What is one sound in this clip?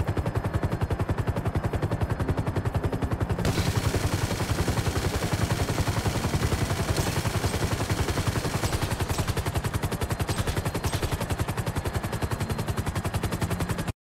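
A helicopter's rotor thumps in a fast, even beat.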